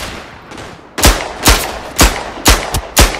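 A pistol fires sharp shots that echo down a narrow passage.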